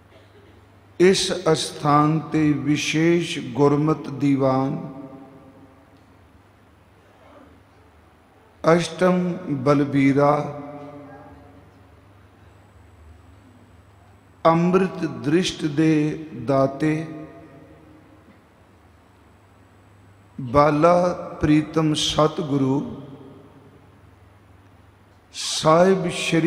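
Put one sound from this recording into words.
An elderly man chants in bursts into a microphone, heard through loudspeakers in an echoing hall.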